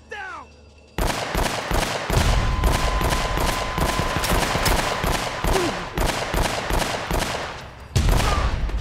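Gunshots fire rapidly in bursts.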